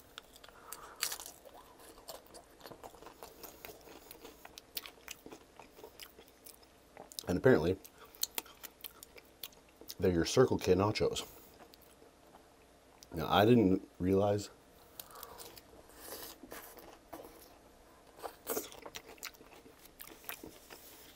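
A man crunches tortilla chips close to a microphone.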